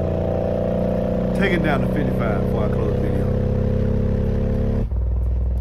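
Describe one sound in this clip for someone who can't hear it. A subwoofer plays deep, steady bass tones.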